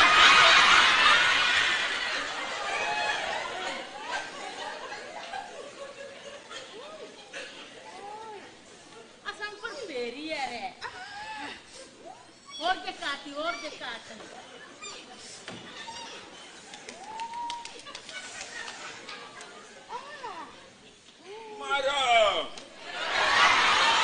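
A woman speaks loudly and with animation in a large echoing hall.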